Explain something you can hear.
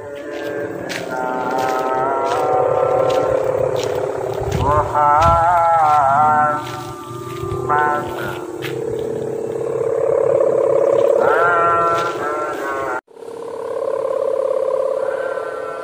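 A kite's hummer drones loudly overhead, wavering up and down in pitch.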